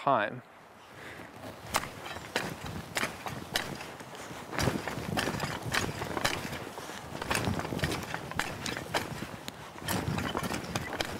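A garden fork digs and crunches into loose soil.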